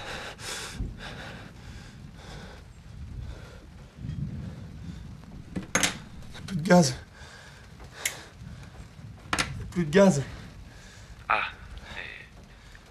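A middle-aged man talks agitatedly into a phone close by.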